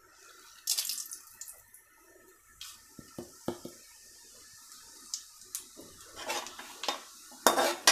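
A metal ladle scrapes and clanks against a metal pan.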